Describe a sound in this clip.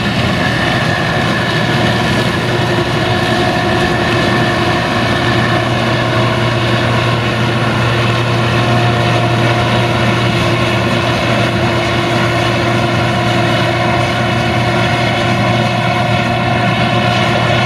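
A combine harvester engine drones steadily up close.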